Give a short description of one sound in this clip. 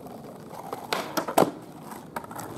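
A skateboard clacks sharply on landing a trick.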